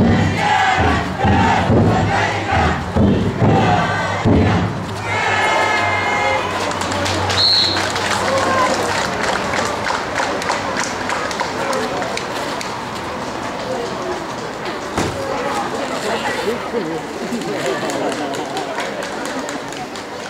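A large crowd murmurs and calls out.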